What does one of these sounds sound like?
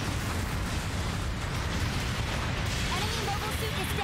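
An explosion booms nearby.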